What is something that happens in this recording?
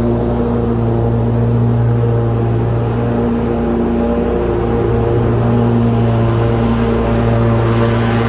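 A riding lawn mower engine hums steadily close by.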